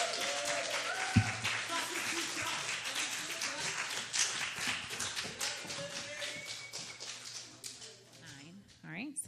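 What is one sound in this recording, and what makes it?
An audience applauds and cheers in a large room.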